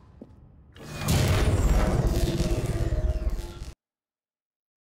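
Machinery roars loudly and then cuts off abruptly.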